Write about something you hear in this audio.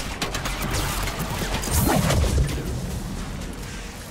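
Laser beams zap and sizzle.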